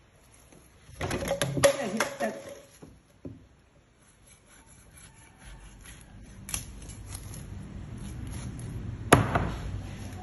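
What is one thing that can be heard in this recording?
A knife blade knocks against a wooden board.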